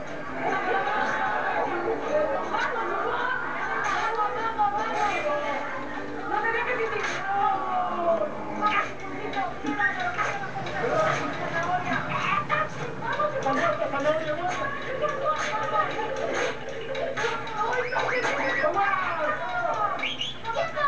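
A young woman laughs and shrieks, heard through a television speaker.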